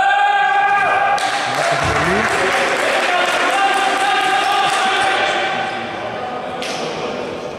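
Players' sneakers squeak on the wooden floor.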